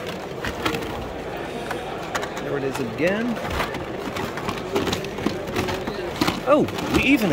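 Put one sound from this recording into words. Plastic blister packs rustle and click as a hand sorts through them.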